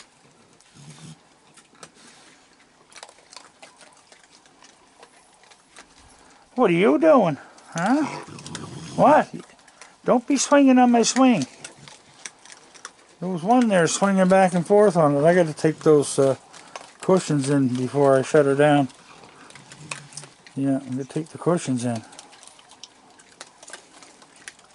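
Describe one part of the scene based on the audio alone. Raccoons crunch and chew on dry food.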